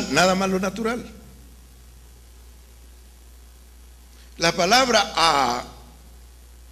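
An elderly man speaks slowly and with feeling into a microphone, in short bursts with long pauses.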